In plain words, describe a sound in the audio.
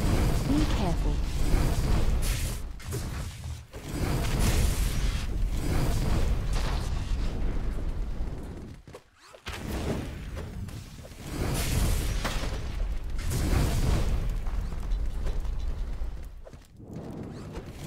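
Game sounds of sword swings and robots breaking up clash and clatter.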